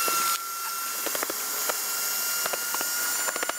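Hands pat and press on an air mattress.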